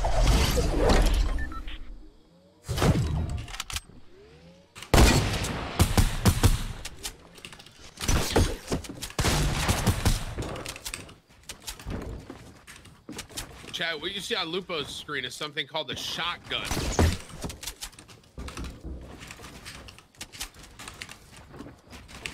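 Sharp game clicks and bangs of building and shooting come in quick bursts.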